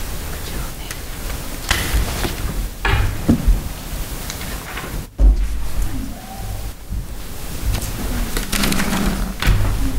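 Papers rustle and thump on a table near a microphone.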